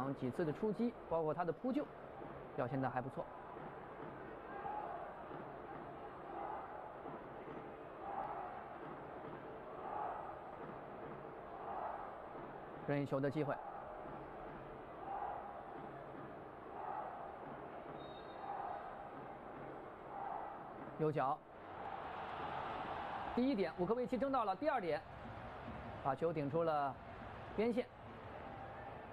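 A large crowd chants in a steady rhythm in a stadium.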